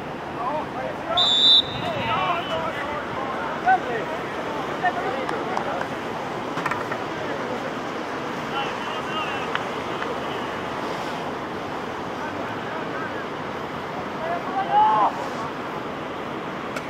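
Wind blows across an open field.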